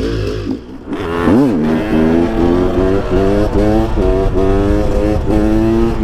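A motorcycle engine roars and revs up and down as the bike rides along.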